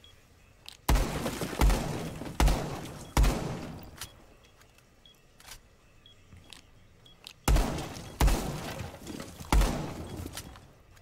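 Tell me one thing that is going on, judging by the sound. Heavy explosions boom again and again, each fading into a rumbling echo.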